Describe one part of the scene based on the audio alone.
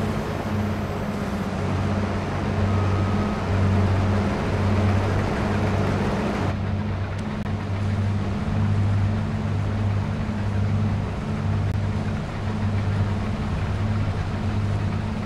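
A combine harvester's engine rumbles with a steady, throbbing drone.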